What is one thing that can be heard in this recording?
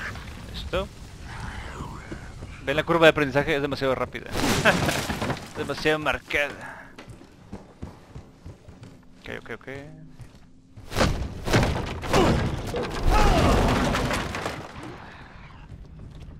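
Footsteps thump on wooden boards.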